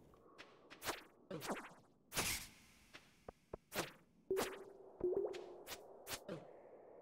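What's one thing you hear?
Quick swishing and clanging game sound effects ring out repeatedly.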